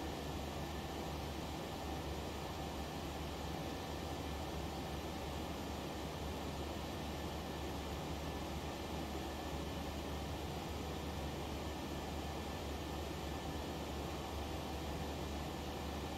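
Jet engines hum and roar steadily.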